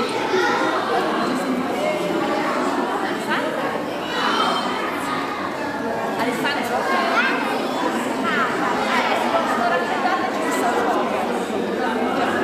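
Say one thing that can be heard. A young woman talks warmly with the children up close.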